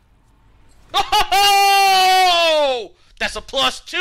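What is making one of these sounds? A middle-aged man shouts out in excitement.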